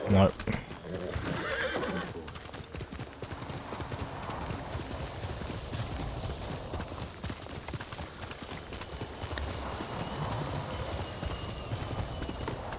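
A horse gallops over grass with steady thudding hooves.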